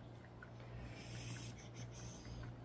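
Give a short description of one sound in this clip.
A spray bottle hisses briefly.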